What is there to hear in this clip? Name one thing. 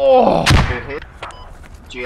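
An assault rifle fires a shot.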